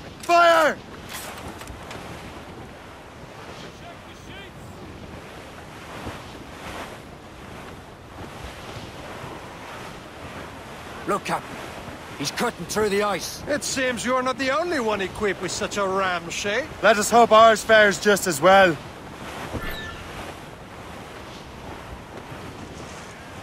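Wind blows through the sails.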